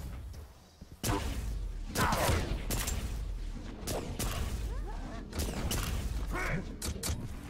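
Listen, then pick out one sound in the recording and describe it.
Video game weapons fire in loud bursts.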